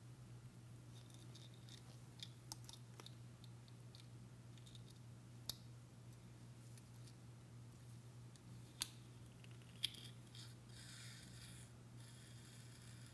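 Small metal instruments click and tick softly.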